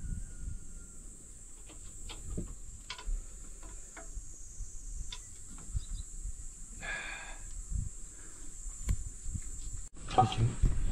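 Metal parts clink and tap against an engine.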